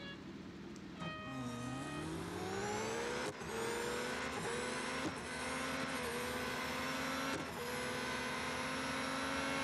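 A racing car engine roars and rises in pitch as it speeds up.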